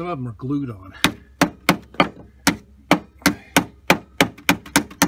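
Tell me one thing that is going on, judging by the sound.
A screwdriver taps sharply on an engine part, again and again.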